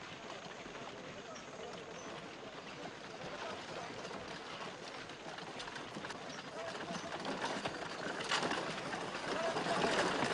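Footsteps of many people shuffle on dry ground.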